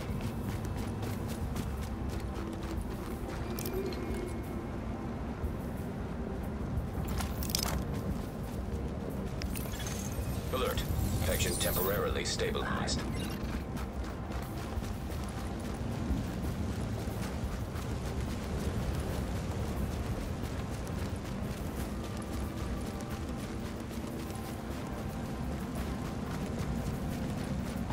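Boots run on snow.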